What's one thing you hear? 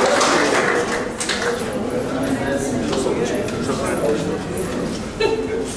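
A crowd of men and women murmurs and chats.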